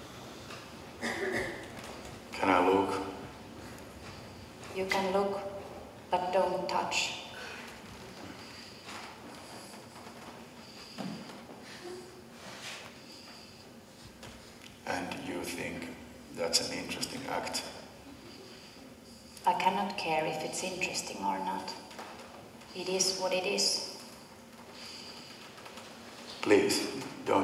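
A man speaks theatrically, heard from across an echoing hall.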